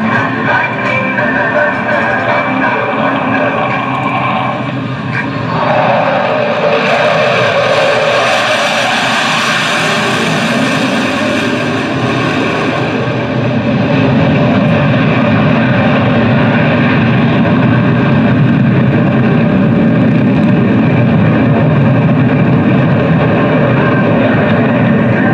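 A jet engine roars loudly overhead, its pitch shifting as the plane passes.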